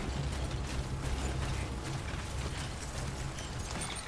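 A vehicle engine rumbles as it drives over rocks.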